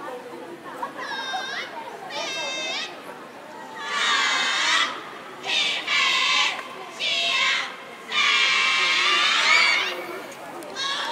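A large choir of children sings in high voices outdoors.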